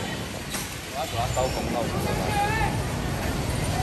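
Men talk briefly nearby on the street.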